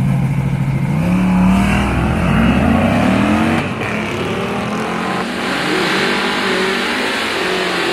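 A car engine revs hard and roars off, its pitch climbing through the gears.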